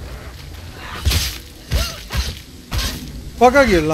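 A sword swishes and clangs in heavy blows.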